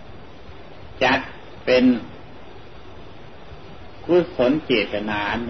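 An elderly man speaks slowly and calmly, with long pauses.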